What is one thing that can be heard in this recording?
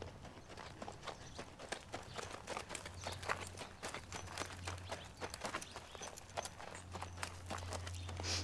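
A horse's hooves thud softly on sand at a walk.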